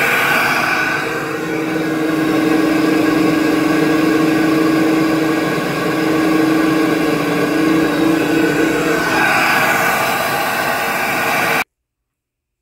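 A machine runs with a loud, steady roar and hum, then stops abruptly.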